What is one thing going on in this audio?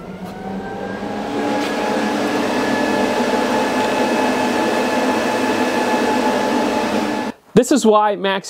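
A car engine idles steadily with a low hum.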